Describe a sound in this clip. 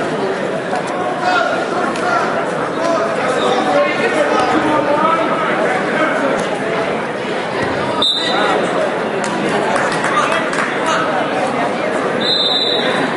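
A crowd chatters and shouts in a large echoing gym.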